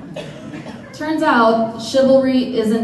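A young woman sings out into a microphone.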